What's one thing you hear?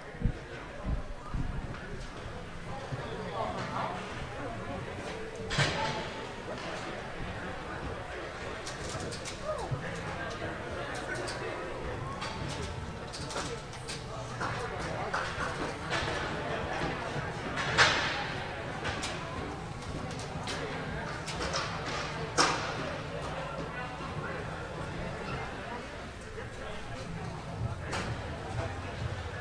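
A crowd of distant voices murmurs and calls out in a large echoing hall.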